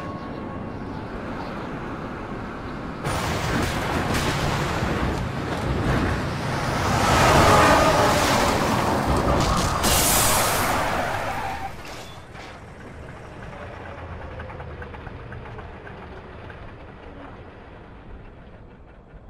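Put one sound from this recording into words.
A heavy truck engine roars and rumbles.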